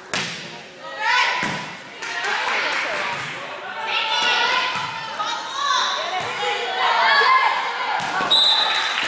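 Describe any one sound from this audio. A volleyball is hit with sharp smacks.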